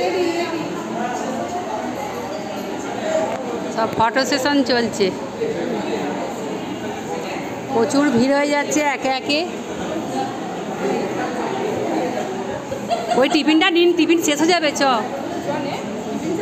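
A crowd of people chatter indoors.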